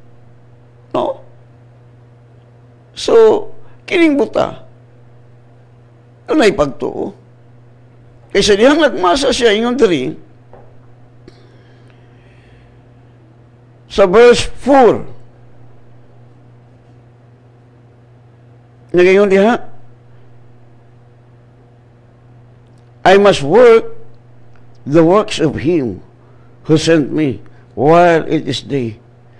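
An elderly man speaks slowly and deliberately into a close microphone, with long pauses.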